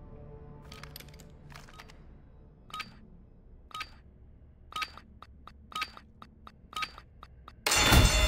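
A countdown beeps once every second.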